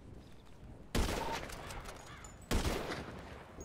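A rifle fires loud sharp shots.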